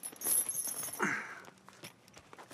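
A young man speaks sharply, close by.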